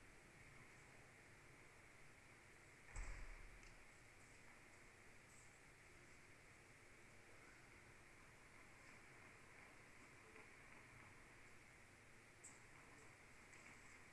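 A tennis ball is struck back and forth, with the hits echoing faintly in a large hall.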